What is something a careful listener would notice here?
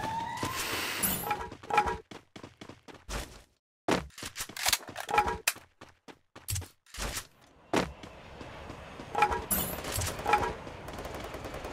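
Gunshots fire in short, sharp bursts.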